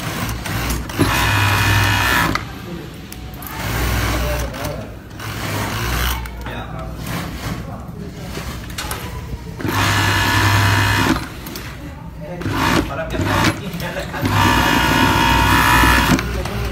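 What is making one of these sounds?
An overlock sewing machine whirs in short, loud bursts.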